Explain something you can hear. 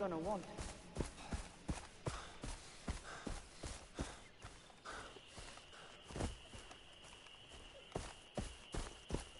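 Footsteps rustle through grass at a steady pace.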